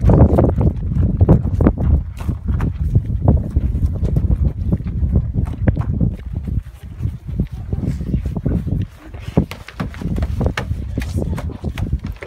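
Footsteps run across grass and gravel.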